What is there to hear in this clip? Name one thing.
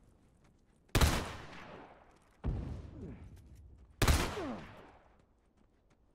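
Gunshots ring out one at a time, each echoing briefly.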